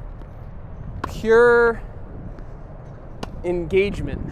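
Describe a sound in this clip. A racket strikes a tennis ball.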